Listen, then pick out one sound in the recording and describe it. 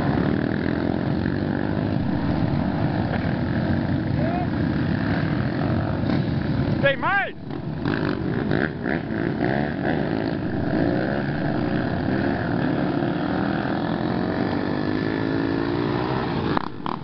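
A single dirt bike engine revs up close and pulls away.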